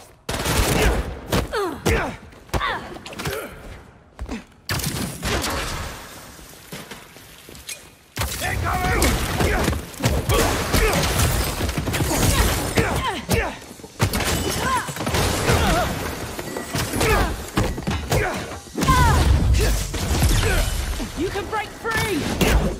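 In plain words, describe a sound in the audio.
Objects smash and clatter as they are thrown.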